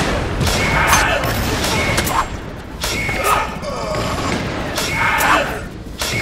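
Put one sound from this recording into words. Blades clash and strike in a fast fight.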